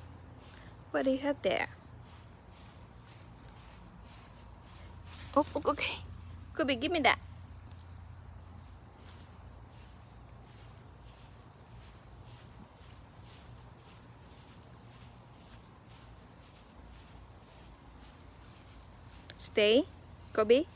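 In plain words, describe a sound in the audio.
A woman calls out loudly nearby in short bursts, outdoors.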